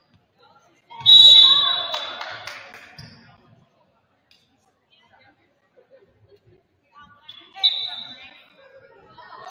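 A referee blows a sharp whistle in an echoing gym.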